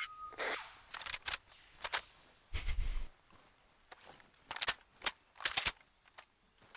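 A rifle fires several sharp single shots.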